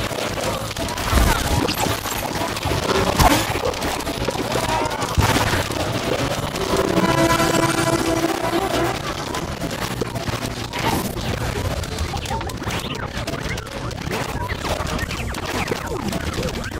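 Cartoon plants fire peas with quick popping sounds.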